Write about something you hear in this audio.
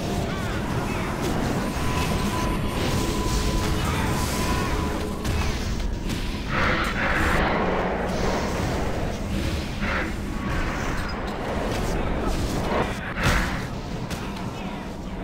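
Spell effects crackle and boom in a busy fight.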